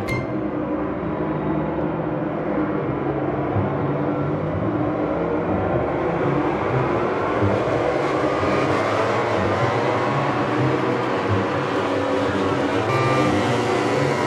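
Motorcycle engines whine loudly at high revs.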